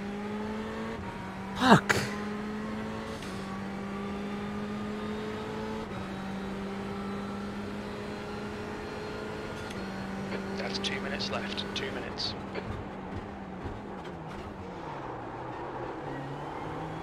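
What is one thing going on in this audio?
A racing car engine drones steadily, shifting pitch as gears change.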